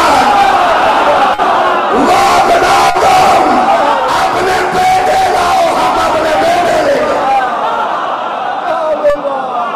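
A crowd cheers and chants along.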